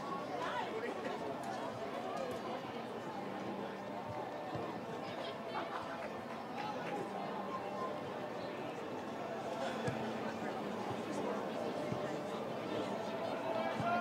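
A crowd of spectators murmurs and calls out at a distance outdoors.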